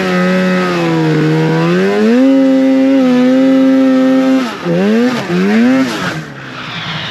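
A snowmobile engine whines loudly, its pitch rising and falling as it revs.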